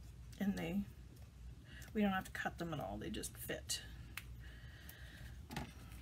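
Stiff paper card rustles and taps softly as it is handled.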